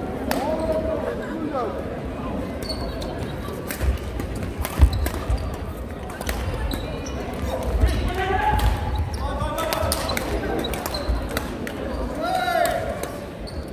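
Shoes squeak on the court floor.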